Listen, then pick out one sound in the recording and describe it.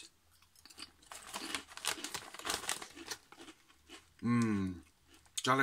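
A snack bag crinkles.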